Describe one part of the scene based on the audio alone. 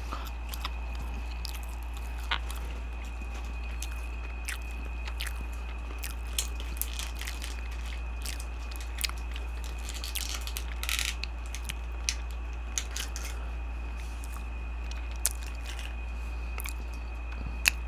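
Paper and plastic packaging crinkle and rustle close up.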